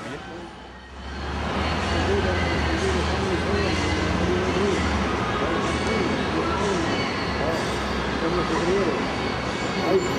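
Road traffic rumbles past outdoors.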